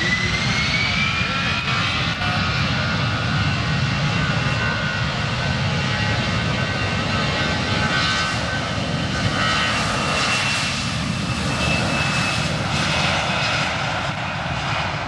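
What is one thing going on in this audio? Jet engines whine with a rising high pitch.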